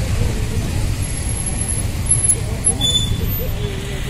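Motorcycle engines hum as they ride by.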